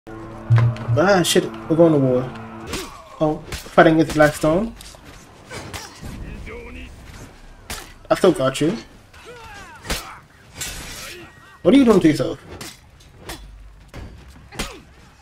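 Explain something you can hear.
Steel blades clash and clang in a fierce fight.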